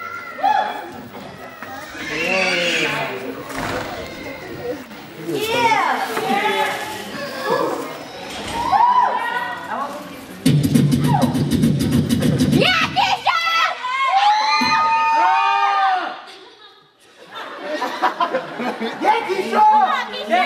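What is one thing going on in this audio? Another young woman answers loudly through a microphone.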